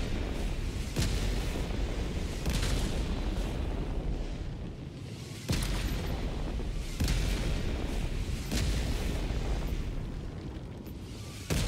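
Heavy explosions boom and rumble in the distance, one after another.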